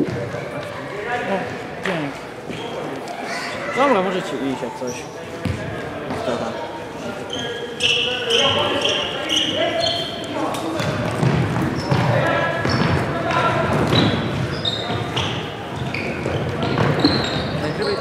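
Young men shout and call to each other across a large echoing hall.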